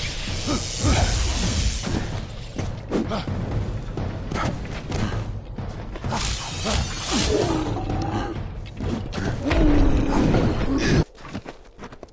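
Loud game combat sounds of magic blasts and sword hits clash.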